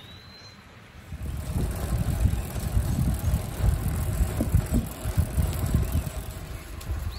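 Bicycle tyres hum on a concrete path.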